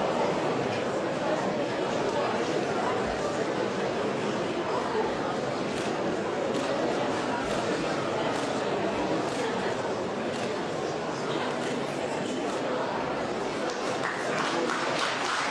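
A large audience murmurs in an echoing hall.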